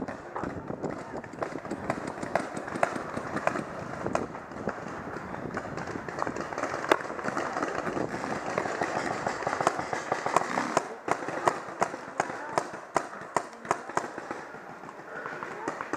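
Paintball markers fire in rapid pops outdoors.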